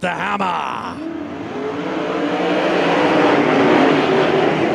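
Many race car engines roar loudly and rise as the cars speed up.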